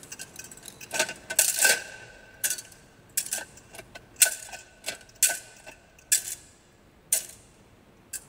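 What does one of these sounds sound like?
Glass and metal vessels clink and tap as they are handled.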